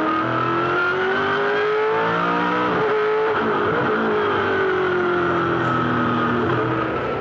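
A race car engine roars loudly up close, rising in pitch and dropping as it shifts gears.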